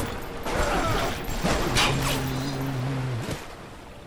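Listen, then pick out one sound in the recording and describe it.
A machine gun fires a short burst.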